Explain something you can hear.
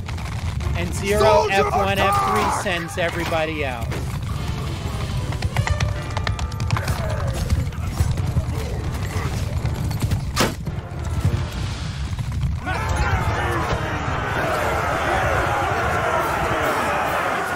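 Horses gallop with heavy thudding hooves.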